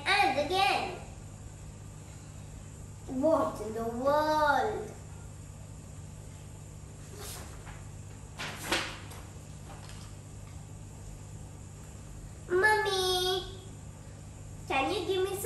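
A young girl speaks close by in a lively, sing-song voice.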